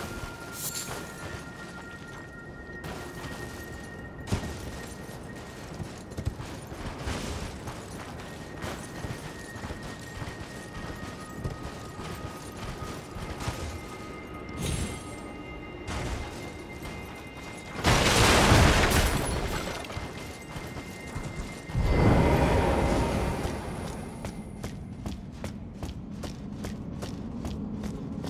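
Hooves thud on snow as a horse gallops.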